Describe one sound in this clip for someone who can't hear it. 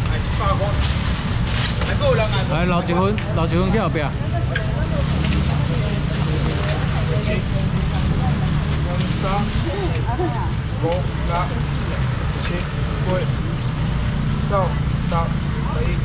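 Plastic bags rustle and crinkle.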